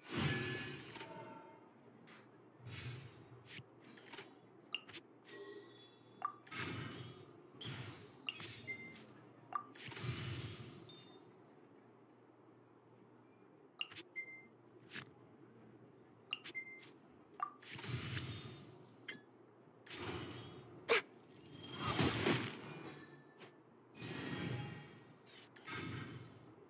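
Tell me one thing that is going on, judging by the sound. Bright chimes and whooshes play as cards are played.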